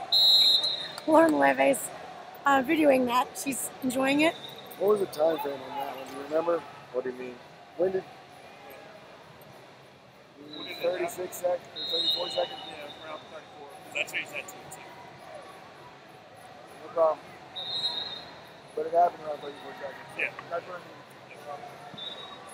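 Men shout and call out loudly across a large echoing hall.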